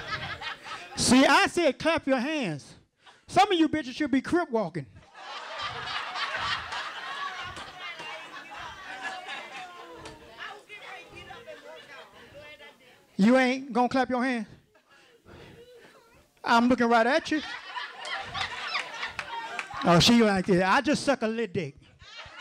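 A man speaks with animation through a microphone to an audience.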